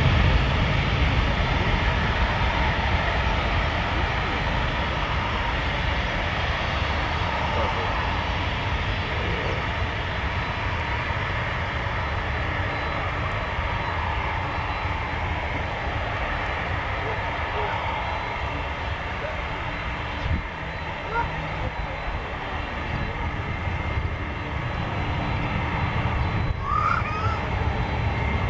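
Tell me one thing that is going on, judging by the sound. A jet airliner's engines roar loudly and slowly fade as it rolls down a runway.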